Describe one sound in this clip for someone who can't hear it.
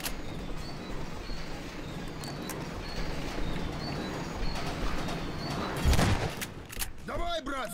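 Footsteps clatter on a metal roof.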